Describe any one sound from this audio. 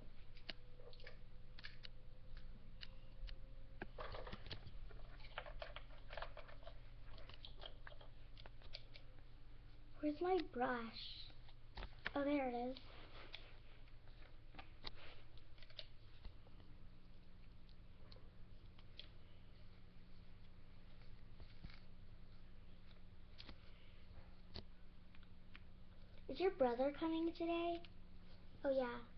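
Plastic dolls tap and clatter as they are handled.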